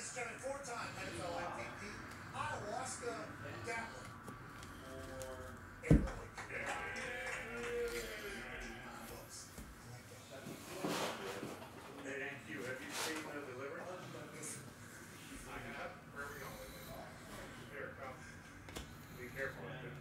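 Trading cards shuffle and slide against each other in hand.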